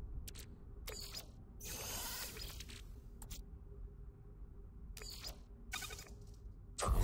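Short interface clicks and swishes sound.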